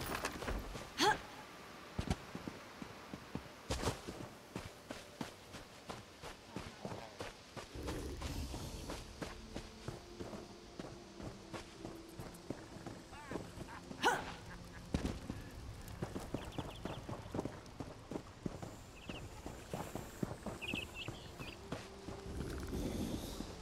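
Footsteps patter quickly on grass and stone.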